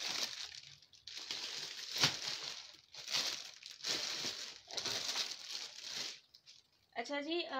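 Plastic packaging rustles and crinkles as items are handled.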